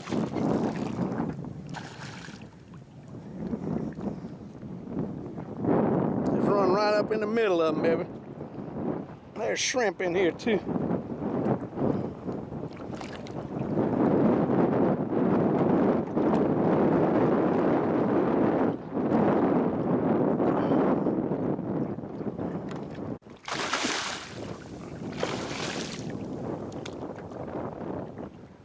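Wind blows steadily across open water.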